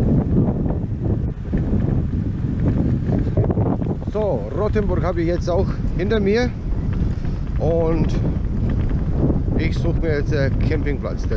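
Wind rushes loudly across a microphone.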